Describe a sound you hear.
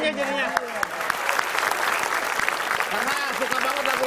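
An audience claps and laughs.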